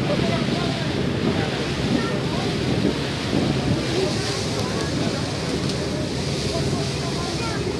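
Wind blusters loudly across the water outdoors.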